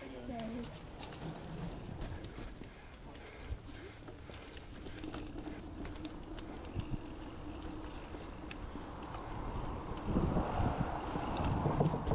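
Bicycle tyres thump over wooden boards.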